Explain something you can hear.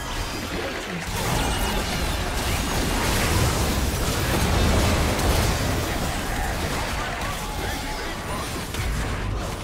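Spell effects whoosh and crackle in a fast game fight.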